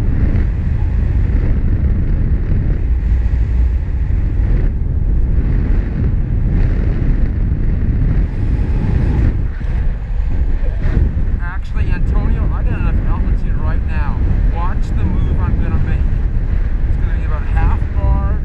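Strong wind roars and buffets steadily outdoors.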